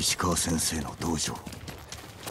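A horse gallops, its hooves thudding on the ground.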